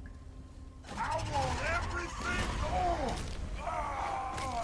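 Flames burst up and roar.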